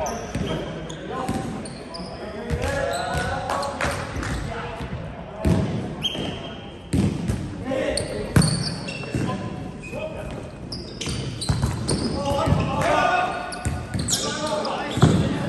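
Young men shout and call out during play.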